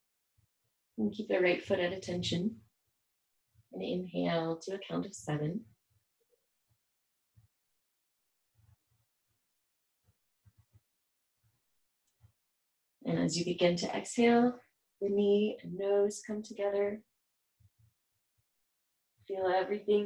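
A woman speaks calmly and clearly, close to a microphone, with pauses.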